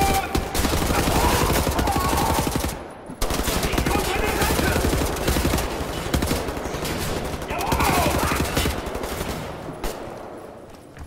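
Automatic gunfire rattles loudly.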